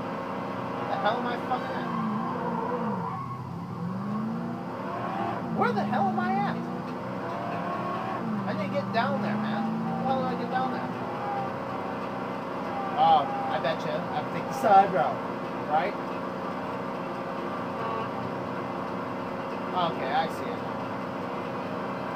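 A car engine hums and revs steadily as a car speeds along a road.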